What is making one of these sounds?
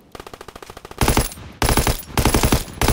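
A rifle fires in loud rapid bursts.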